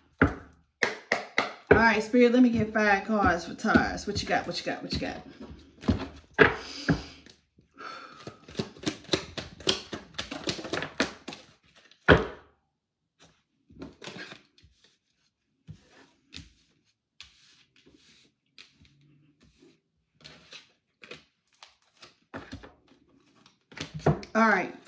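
Cards shuffle and tap in a woman's hands.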